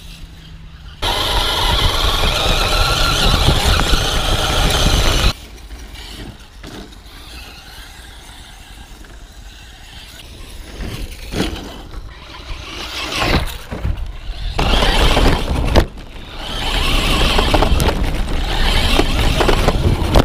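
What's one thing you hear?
A small electric motor whines as a toy car races over rough ground.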